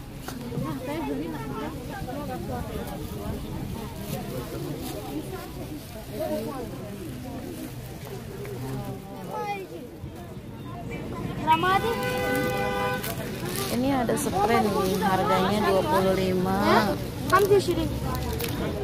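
Women chatter nearby in a busy, crowded space.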